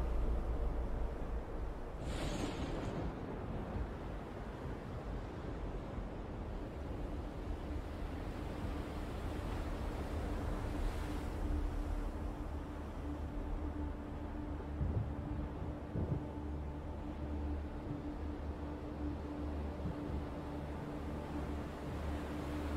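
Rough sea waves surge and crash steadily.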